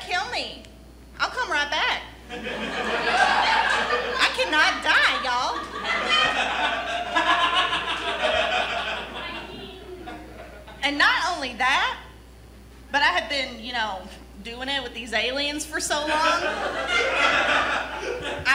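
Young adults speak in turn, acting out lines with animation.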